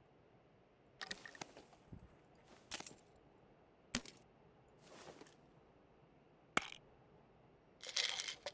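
Soft clicks and rustles of gear being handled.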